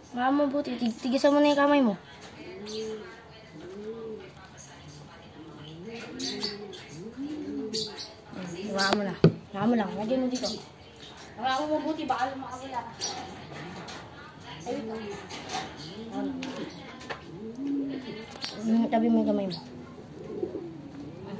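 Feathers rustle and tear as a bird is plucked by hand.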